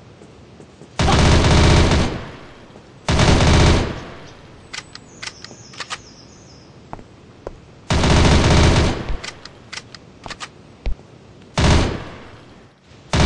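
A rifle fires in short rapid bursts.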